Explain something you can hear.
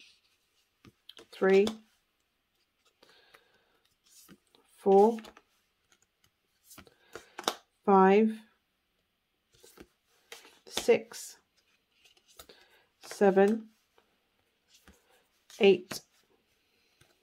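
Playing cards slide and flick against each other in hands.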